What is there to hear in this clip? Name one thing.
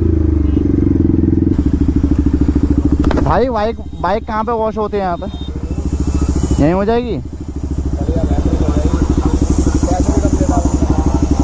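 A motorcycle engine idles nearby with a steady low throb.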